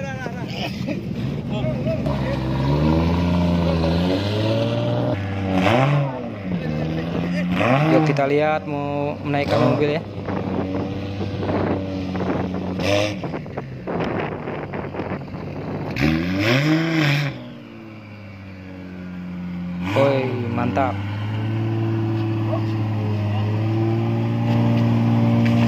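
A car engine idles roughly and revs loudly in bursts nearby.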